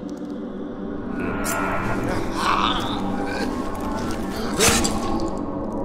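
Blows thud and scuffle in a brief struggle.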